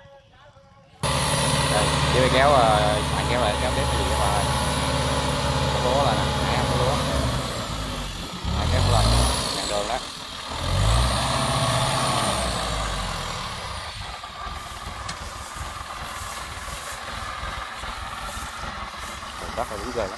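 A small tracked diesel carrier engine chugs as the carrier crawls through mud.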